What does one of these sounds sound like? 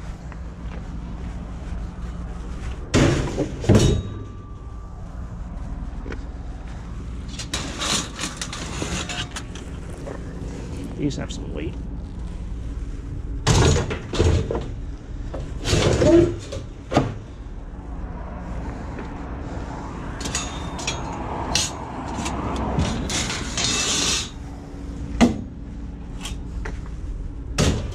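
Metal shelving rails clank and rattle as they are loaded into a van.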